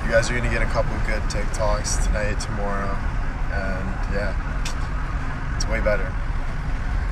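A young man talks casually, close to a phone microphone.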